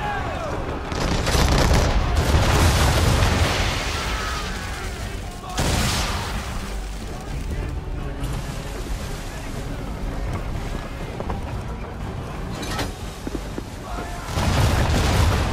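Cannons fire in loud, booming blasts.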